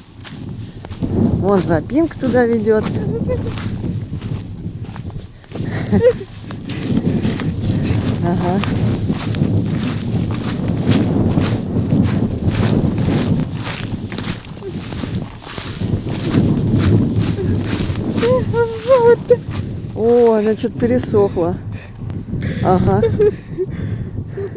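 A woman speaks with animation and laughs close by.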